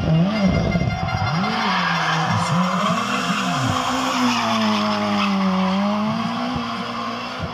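A rally car engine revs hard and roars as it slides around a bend.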